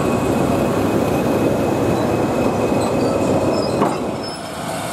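Railway carriages rumble and clatter past close by.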